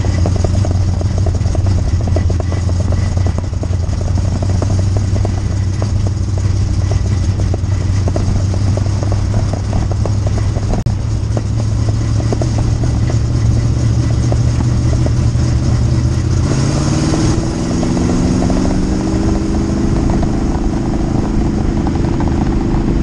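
A race car engine roars loudly up close, rising in pitch as it accelerates out of a turn.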